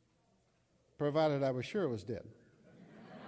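An elderly man speaks into a microphone in a large echoing hall.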